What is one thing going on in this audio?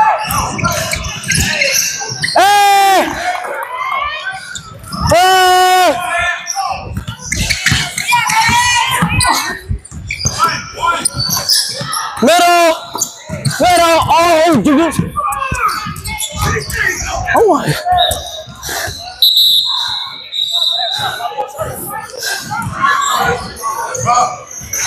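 Spectators shout and cheer nearby.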